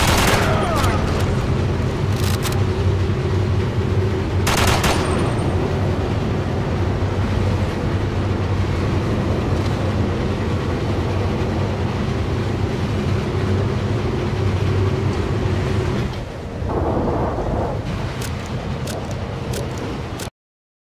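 A train rumbles steadily along through an echoing tunnel.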